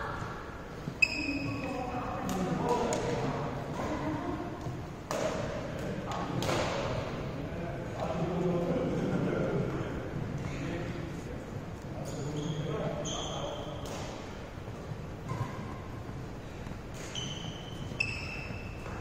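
Shuttlecocks are struck with sharp pops of badminton rackets.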